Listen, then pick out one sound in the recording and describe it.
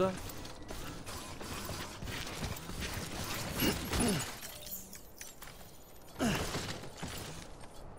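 Heavy footsteps thud on the ground at a steady walking pace.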